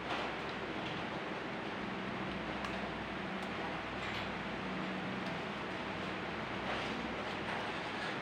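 Fingers handle a small piece of plastic bottle, which crinkles and clicks.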